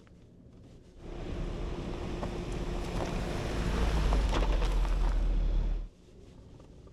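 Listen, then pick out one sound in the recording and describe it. An off-road car drives over a gravel track outside, its engine rumbling.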